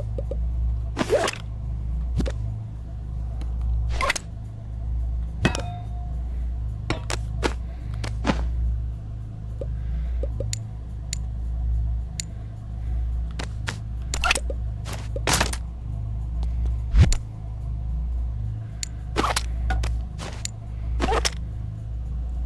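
Small hard objects click and clatter as they are picked up and put down.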